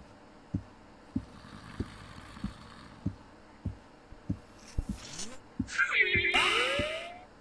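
Footsteps thud steadily at a walking pace on a hard floor.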